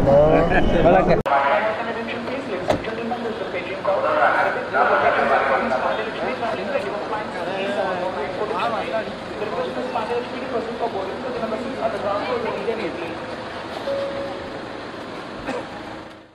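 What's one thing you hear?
A crowd of men talks loudly close by, outdoors.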